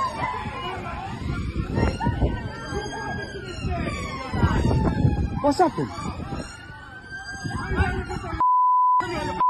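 A police siren wails nearby, rising and falling.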